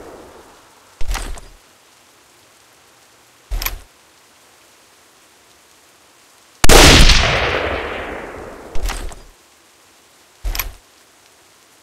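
A rifle bolt is worked with metallic clacks.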